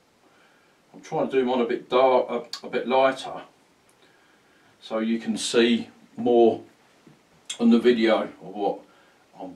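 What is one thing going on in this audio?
A middle-aged man speaks calmly and clearly into a close microphone.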